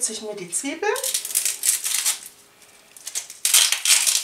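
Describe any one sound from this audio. A knife taps and cracks an eggshell.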